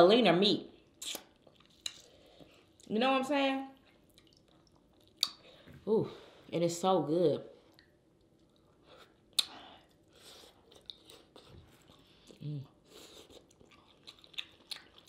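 A woman chews and smacks her lips loudly while eating.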